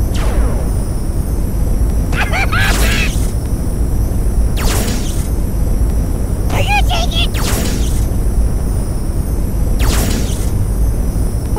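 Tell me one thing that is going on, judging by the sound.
Quick whooshing swoops sound again and again.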